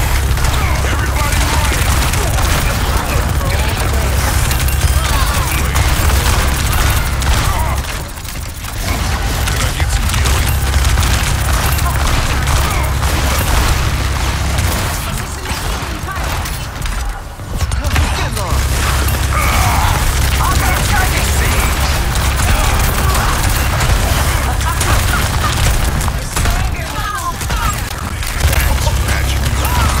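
Guns fire in rapid, heavy bursts.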